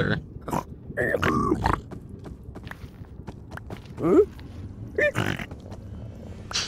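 Pig-like creatures grunt in short, gruff bursts.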